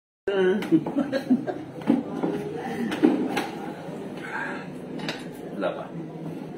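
A woman laughs heartily nearby.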